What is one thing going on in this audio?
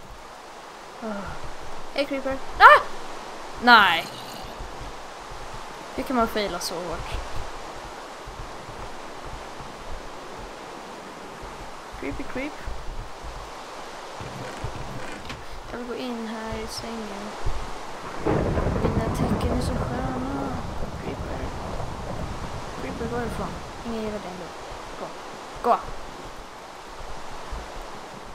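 A boy talks with animation into a close microphone.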